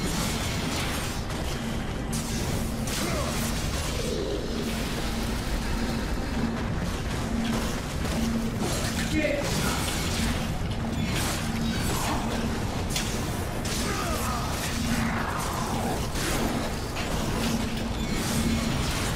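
Blades swing and clash in combat.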